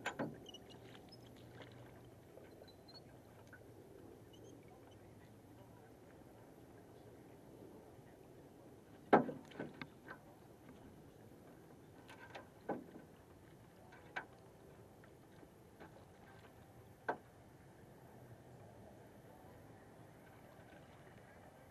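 A large fish thrashes and splashes in the water beside a boat.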